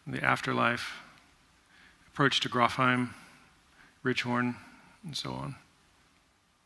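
A man speaks into a microphone in short bursts, heard over loudspeakers in a large room.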